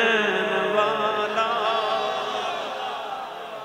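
Men cheer and call out in a crowd.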